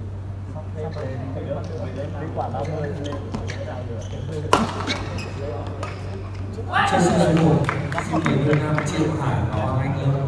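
Shuttlecocks are struck with rackets, sharp pops echoing in a large hall.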